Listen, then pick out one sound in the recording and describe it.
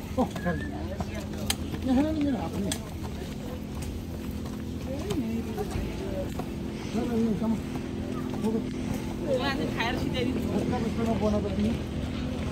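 Several people chat nearby as they walk.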